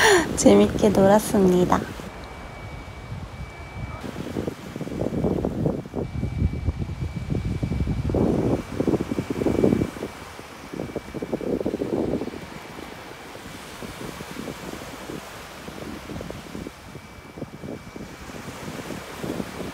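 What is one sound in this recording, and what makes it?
A stick scratches lines in wet sand.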